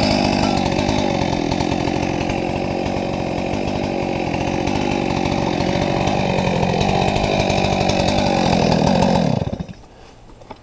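A chainsaw engine runs loudly close by, then cuts off.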